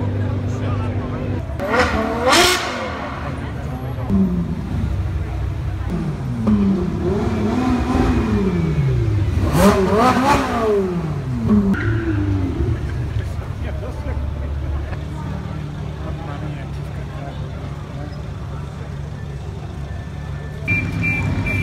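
Sports car engines rev loudly and roar past.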